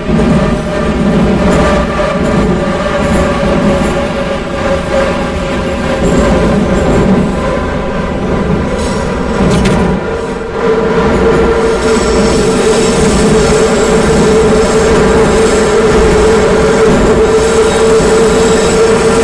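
A subway train rumbles steadily through a tunnel.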